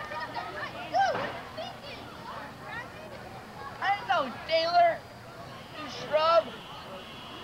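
A young boy shouts loudly.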